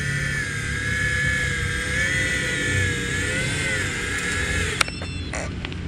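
A small drone's motors whine and hum as it flies, then cut out.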